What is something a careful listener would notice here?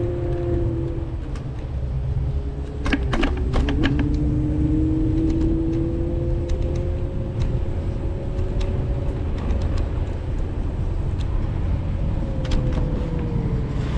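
A car engine hums steadily as it drives slowly.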